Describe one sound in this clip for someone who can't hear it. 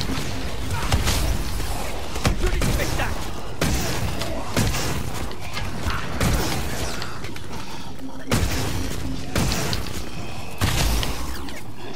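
Electric crackling zaps.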